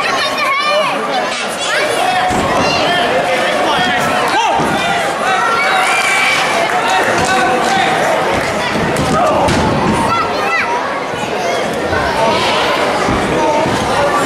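A crowd of children and adults shouts and cheers in a large echoing hall.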